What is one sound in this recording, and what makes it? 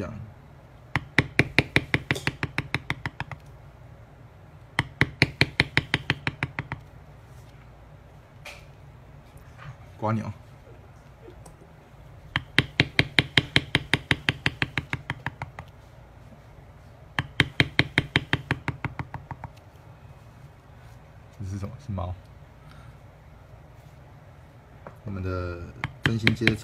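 A mallet taps rapidly and evenly on a metal tool, in bursts of sharp knocks.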